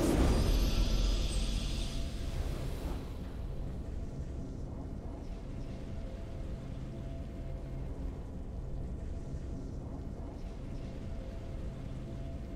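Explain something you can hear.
A triumphant game tune plays softly and steadily.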